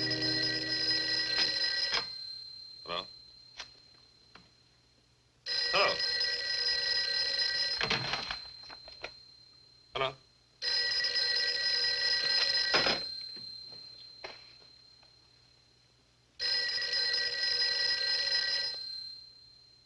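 A telephone rings loudly in repeated long bursts.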